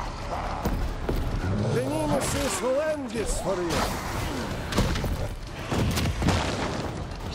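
Heavy blows and thuds land in a fight.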